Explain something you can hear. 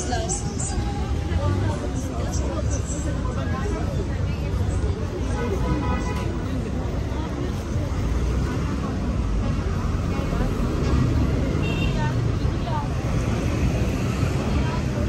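Traffic rumbles steadily in the distance.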